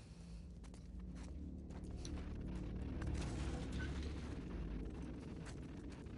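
A metal drawer slides open and rattles.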